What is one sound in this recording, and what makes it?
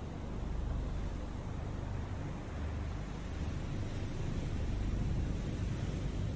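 Rough sea waves churn and splash steadily.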